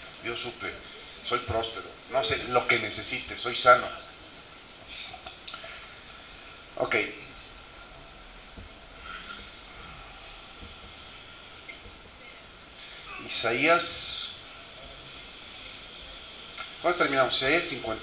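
A middle-aged man speaks into a microphone through loudspeakers, with pauses between phrases.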